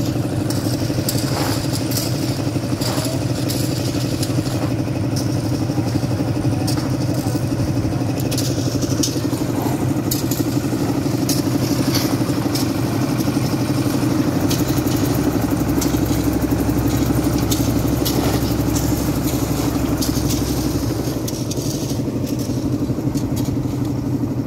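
A motor engine runs with a steady, loud drone.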